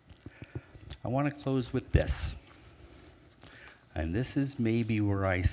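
A man speaks into a microphone, heard through loudspeakers in a large room.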